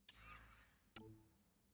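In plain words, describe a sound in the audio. A short electronic click sounds.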